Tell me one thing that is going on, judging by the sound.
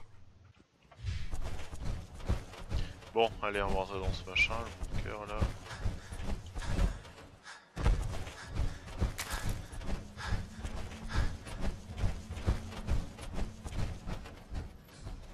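Heavy metallic footsteps thud steadily on the ground.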